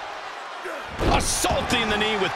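A heavy body thuds onto a wrestling mat.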